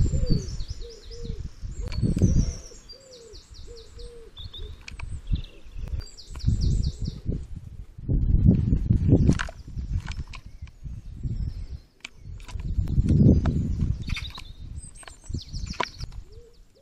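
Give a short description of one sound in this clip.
A bird pecks and taps at a feeder close by.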